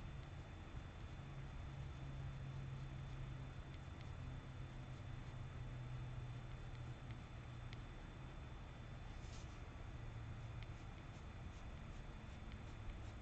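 A pencil scratches softly across paper.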